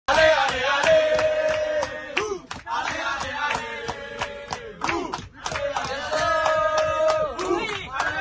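A group of young men and women sing loudly together nearby.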